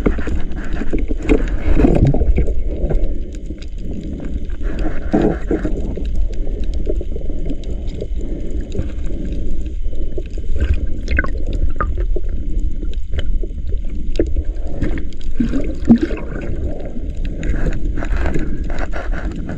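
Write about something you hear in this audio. Water rumbles and churns steadily, heard from underwater.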